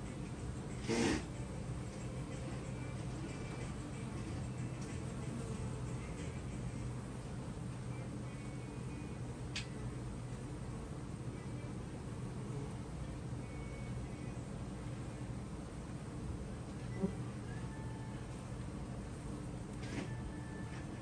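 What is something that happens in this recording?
A wooden hive frame scrapes and knocks against a box.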